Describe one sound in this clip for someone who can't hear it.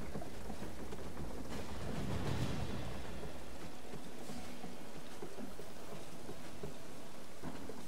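Hands and boots scrape and thud against a wooden wall during a climb.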